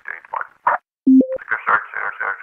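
An alert tone chimes once.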